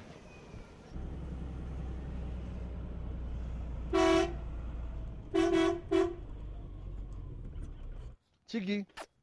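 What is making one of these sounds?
A truck engine rumbles steadily from inside the cab.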